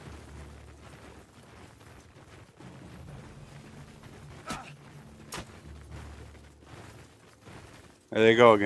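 Many footsteps and clinking armour of a marching army rumble softly.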